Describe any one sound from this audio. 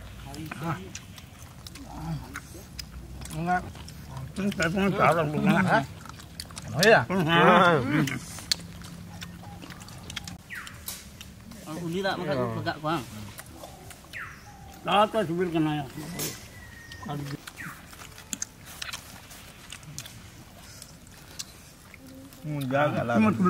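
Men talk calmly close by.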